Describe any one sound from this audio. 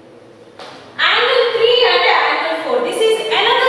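A young woman speaks clearly and steadily, close to a microphone.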